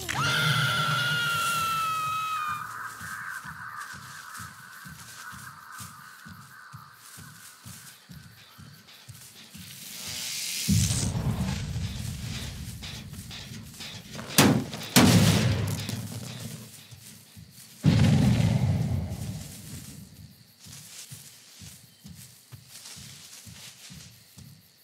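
Heavy footsteps thud steadily through grass.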